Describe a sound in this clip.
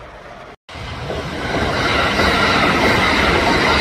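A train rushes past close by with a loud rumble.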